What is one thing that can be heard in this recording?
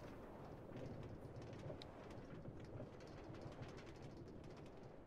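A minecart rumbles and clatters steadily along rails.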